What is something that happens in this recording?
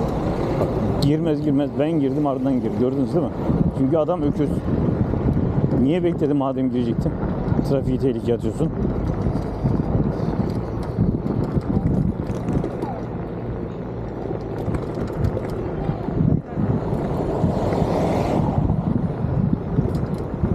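Tyres rumble steadily over a paved road.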